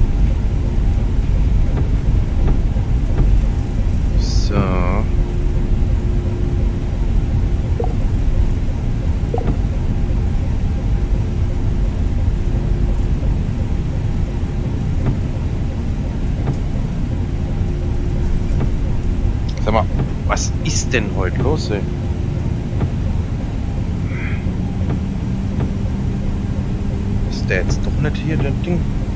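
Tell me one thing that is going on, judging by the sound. A jet engine rumbles steadily at idle.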